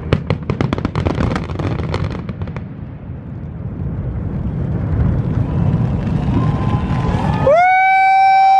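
Fireworks boom with a deep, rolling rumble.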